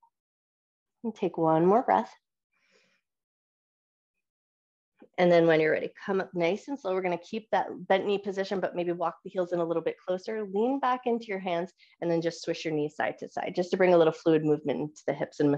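A woman speaks calmly into a headset microphone, heard over an online call.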